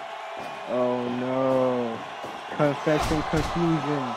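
A wrestler slams an opponent down hard onto the ring mat with a loud thud.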